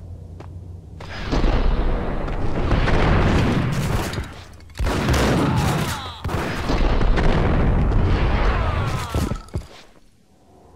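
Gunshots boom and echo loudly.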